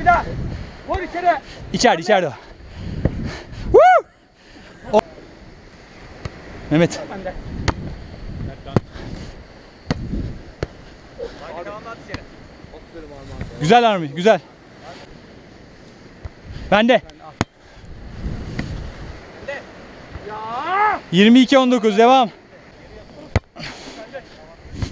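A volleyball is struck with hands, with sharp slaps.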